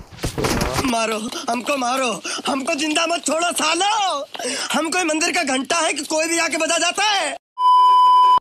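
A man shouts and wails loudly.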